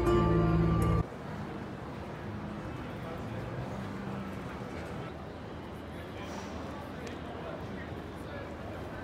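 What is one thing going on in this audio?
A busy pedestrian street hums with crowd murmur and footsteps.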